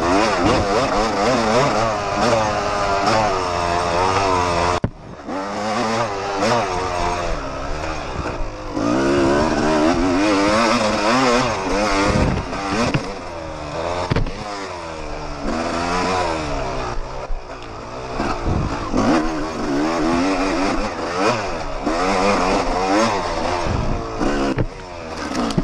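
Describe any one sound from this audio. A motorbike engine revs up and down close by.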